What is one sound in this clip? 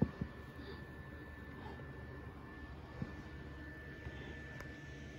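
A small object taps softly on a carpet.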